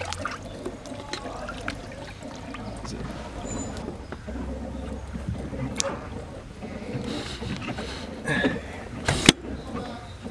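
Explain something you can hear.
Water splashes and sloshes in a tub.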